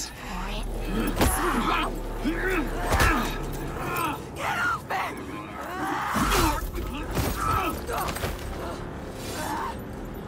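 A young woman cries out and sobs in distress.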